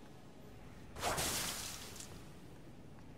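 A blood attack bursts with a loud whooshing roar.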